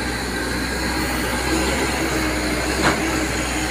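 An excavator bucket scrapes and digs into soil.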